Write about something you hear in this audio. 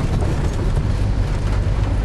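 Windscreen wipers swish across the glass.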